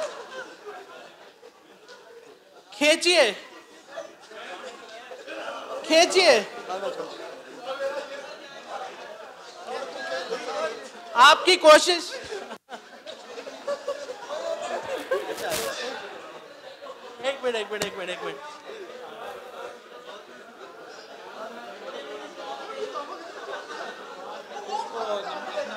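Young men chatter and laugh nearby.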